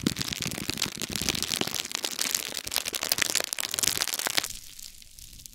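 Plastic wrap crinkles and crackles loudly close up.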